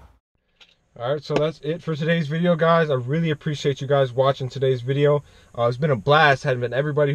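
A young man talks with animation close to a microphone inside a car.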